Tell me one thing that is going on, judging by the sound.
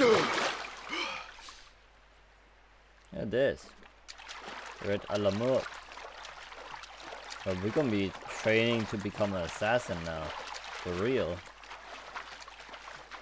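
A swimmer paddles steadily through water with soft splashes.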